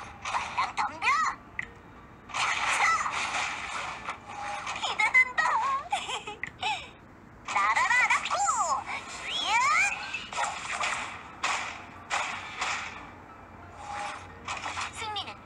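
Fighting game sound effects whoosh and clash in bursts.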